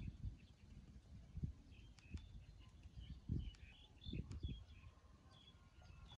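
A baby monkey squeaks and whimpers softly close by.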